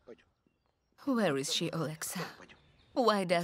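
A woman speaks quietly up close.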